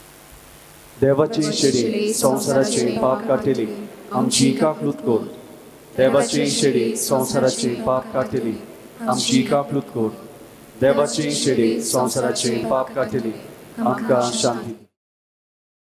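A man speaks calmly through a microphone, heard over loudspeakers in an echoing hall.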